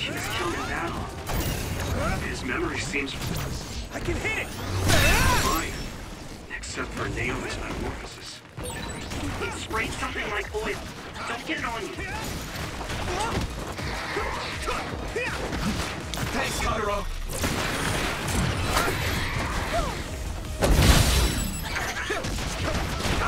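Swords clash and slash in a fast game fight.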